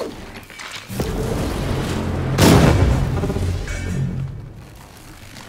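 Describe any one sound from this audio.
A heavy sliding door rumbles open.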